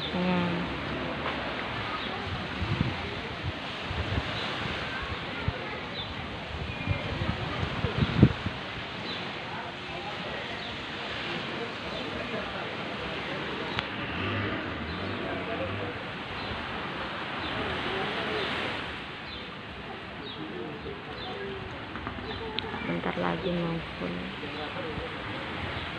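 Men chat at a distance outdoors.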